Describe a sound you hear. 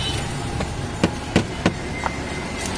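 A wooden stick knocks against a plastic mug.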